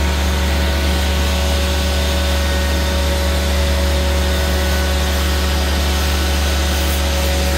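A pressure washer pump motor hums loudly.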